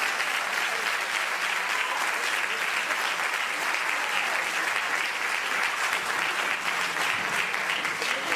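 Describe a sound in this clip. Dancers' heels tap on a wooden stage.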